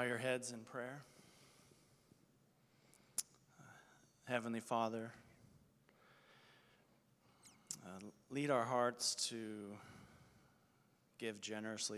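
A man speaks calmly into a microphone, heard through loudspeakers in a large room.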